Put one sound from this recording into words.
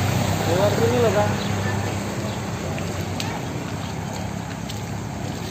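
Water splashes and sloshes under scooter wheels.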